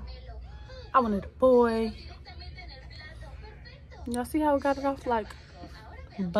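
A young woman talks casually and close to the microphone.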